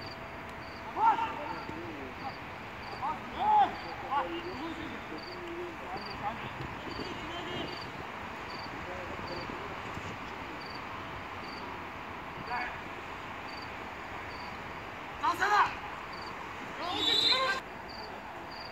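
Young men shout to each other across an outdoor pitch.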